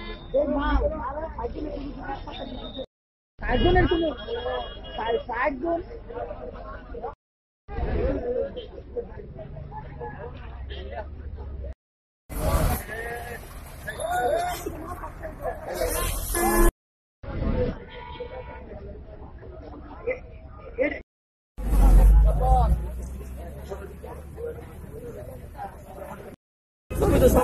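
Several men talk in a crowd outdoors.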